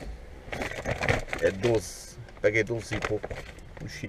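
A plastic bag rustles as a hand rummages in it.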